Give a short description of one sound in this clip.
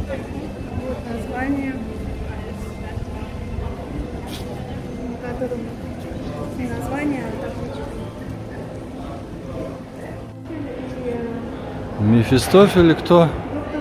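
Several men and women talk quietly at a distance in a large echoing hall.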